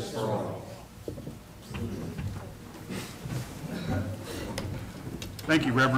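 Chairs creak and shuffle as people sit down.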